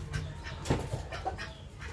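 A chicken clucks nearby.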